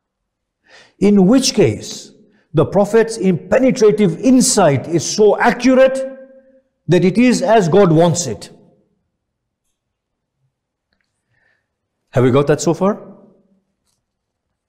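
A middle-aged man speaks with emphasis into a nearby microphone, pausing between phrases.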